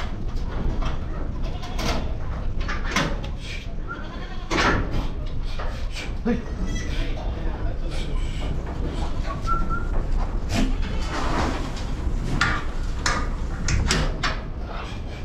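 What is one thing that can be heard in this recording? Goats bleat nearby.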